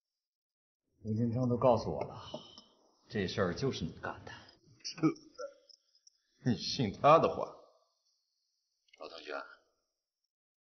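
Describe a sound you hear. A middle-aged man speaks in a low, firm voice at close range.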